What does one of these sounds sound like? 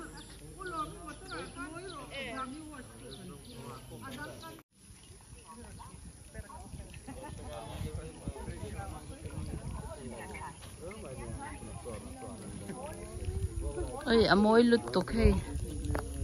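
Women chat at a distance outdoors.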